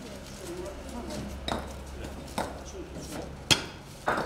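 Paving stones clatter and knock as they are tossed onto a pile.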